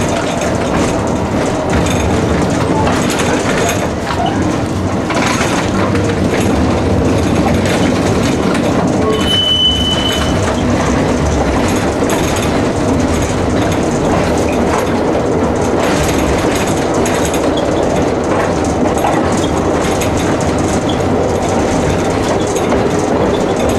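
A tram rumbles and rattles steadily along its rails.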